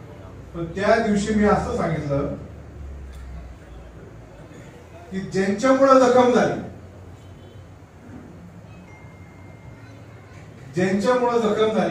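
A man speaks with animation into a microphone through a loudspeaker, pausing between phrases.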